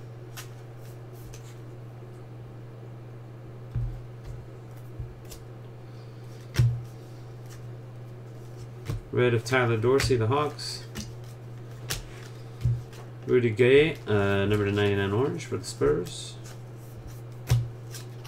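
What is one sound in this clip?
Trading cards rustle and click as they are flipped through.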